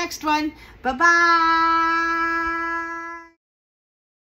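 A middle-aged woman calls out a long, drawn-out, sung note.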